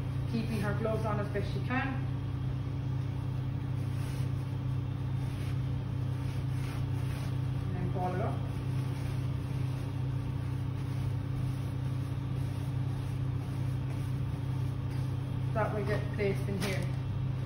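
A plastic gown rustles and crinkles as it is handled.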